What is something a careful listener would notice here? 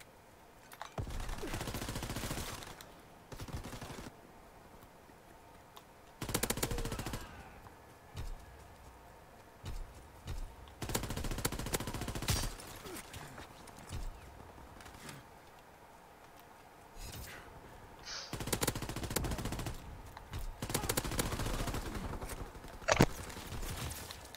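Rifles fire in loud, rapid bursts.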